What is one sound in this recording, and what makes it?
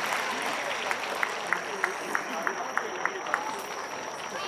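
A crowd claps in a quick rhythm.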